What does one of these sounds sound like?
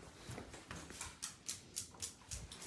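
A cat's paws patter softly on a hard floor.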